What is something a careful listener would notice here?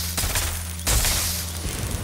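A pistol fires a shot.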